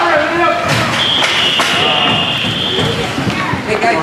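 A referee's whistle blows a long, steady blast.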